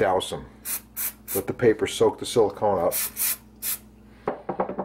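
An aerosol can sprays in short hissing bursts.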